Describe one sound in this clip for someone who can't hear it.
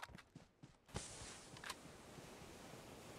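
A smoke grenade hisses steadily.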